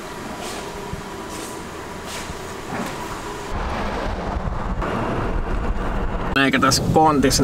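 A van engine idles and rumbles.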